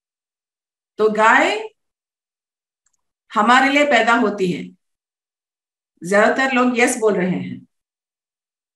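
A woman speaks calmly into a microphone over an online call, in short bursts.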